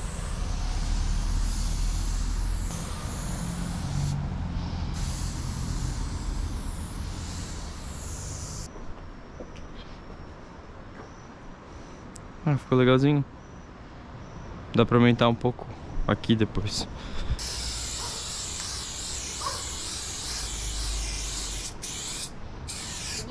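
A spray can hisses as paint sprays onto a wall.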